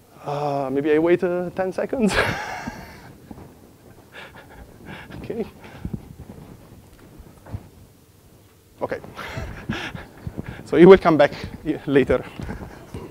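A man lectures through a microphone in a large echoing hall.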